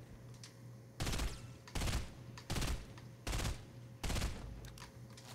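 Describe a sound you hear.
Gunshots ring out in short, sharp bursts.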